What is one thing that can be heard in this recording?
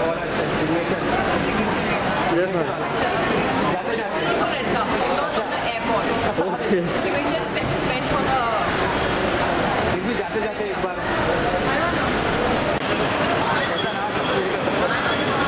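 Several men and women talk and call out at once nearby.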